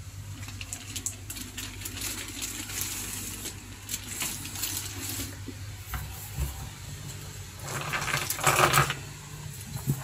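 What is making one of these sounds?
Plastic wrapping crinkles and rustles under a hand.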